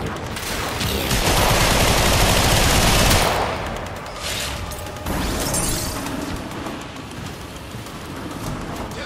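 Gunfire and energy blasts crackle and roar in rapid bursts.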